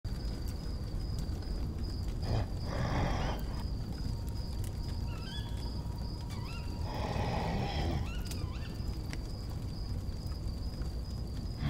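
A fire crackles and roars steadily.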